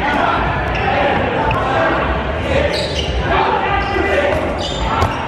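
Men shout and call out to each other across an echoing gym.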